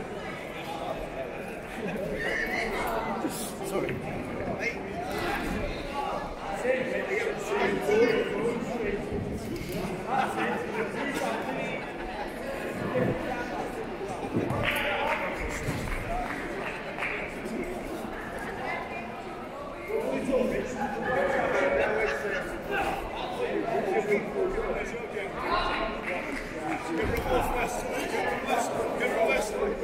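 A crowd talks and calls out throughout a large echoing hall.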